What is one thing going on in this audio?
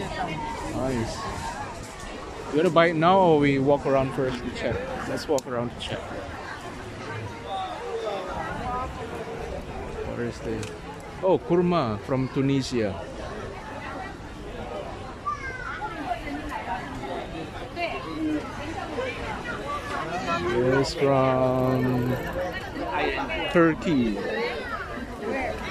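A crowd chatters all around outdoors.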